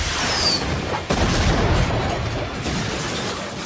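An explosion booms loudly.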